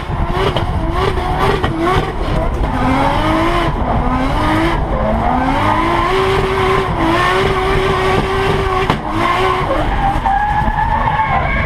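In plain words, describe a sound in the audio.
The engine of a highly tuned turbocharged drift car revs hard and bounces off the limiter, heard from inside the cabin.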